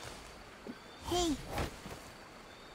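A blade swishes and strikes wood.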